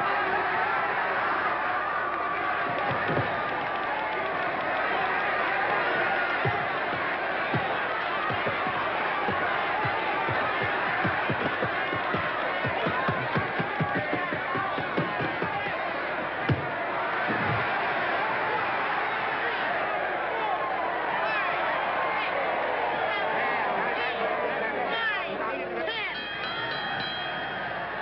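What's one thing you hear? A large crowd cheers and roars loudly in a big echoing hall.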